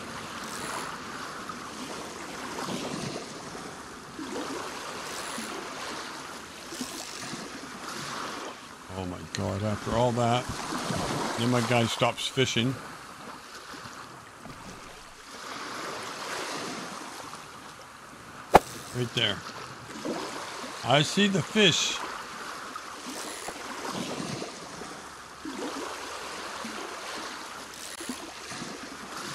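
Water laps gently against a pier.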